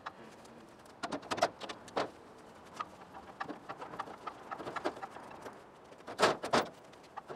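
A metal trailer frame clunks and creaks.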